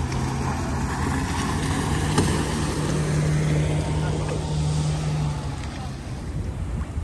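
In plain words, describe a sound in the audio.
Water rushes and splashes in a boat's wake.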